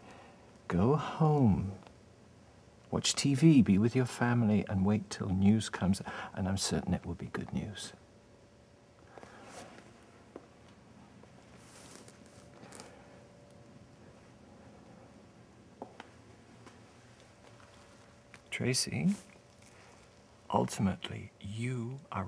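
A woman speaks softly and closely to a man.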